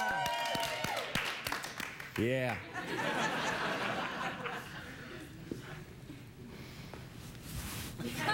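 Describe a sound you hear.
A studio audience claps and applauds.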